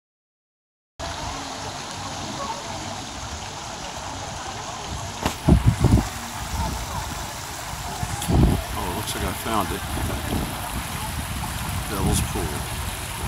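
A shallow stream burbles over rocks outdoors.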